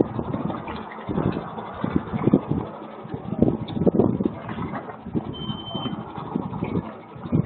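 Water laps gently against a quay and boat hulls.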